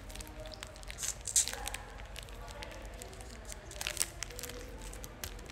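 A young woman bites and crunches a snack close by.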